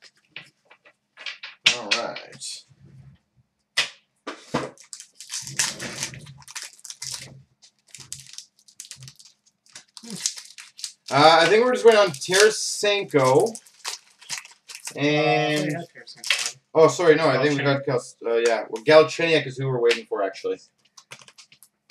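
Playing cards are shuffled and flicked.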